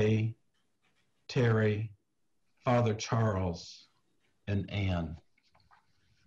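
An elderly man speaks calmly over an online call, in short bursts with pauses.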